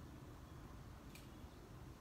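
An eggshell cracks open.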